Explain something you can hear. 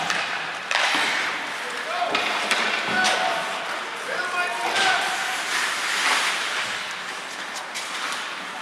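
Hockey sticks clack against the ice and the puck.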